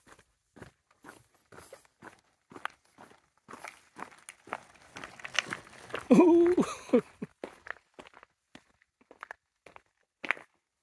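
A mountain bike rolls past on a concrete road.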